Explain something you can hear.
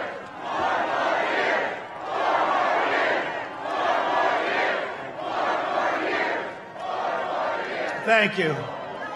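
A large outdoor crowd cheers and chants in rhythmic waves.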